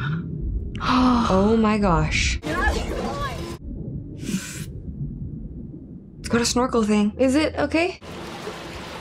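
Two young women talk with animation, close to a microphone.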